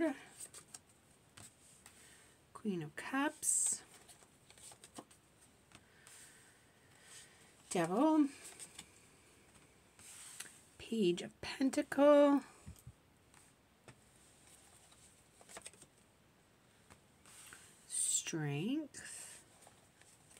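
Playing cards slide and tap softly onto a table.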